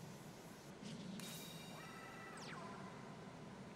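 A game sound effect rings out with a quickly falling chime.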